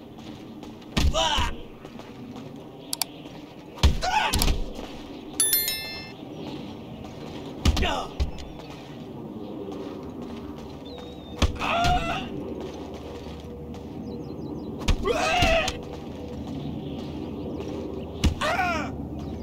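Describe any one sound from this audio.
Heavy thuds ring out as cartoon figures are shoved off a ledge.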